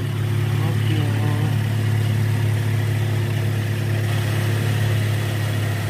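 An engine idles nearby with a steady low hum.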